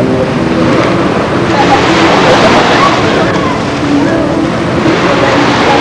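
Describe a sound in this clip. A boy splashes the water with his hands.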